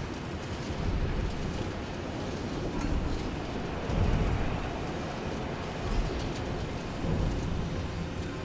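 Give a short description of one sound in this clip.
Wind rushes past a gliding game character.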